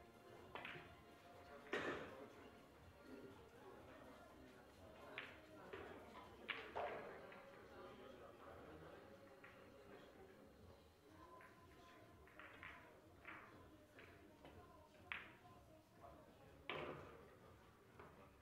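Billiard balls knock together with sharp clicks.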